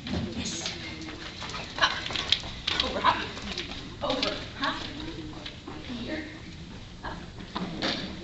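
A woman calls out to a dog in a large echoing hall.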